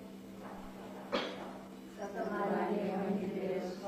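A woman sobs close by.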